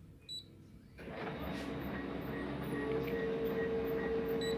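A printer whirs and hums steadily as it runs.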